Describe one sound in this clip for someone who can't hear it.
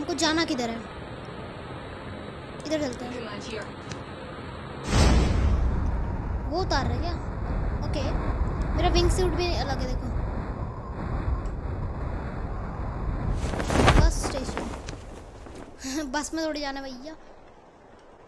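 A young boy talks with animation into a close microphone.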